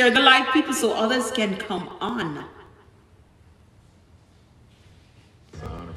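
A woman sings close into a microphone.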